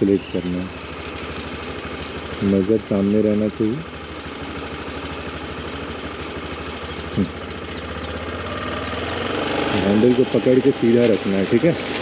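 A scooter hums steadily as it rides along.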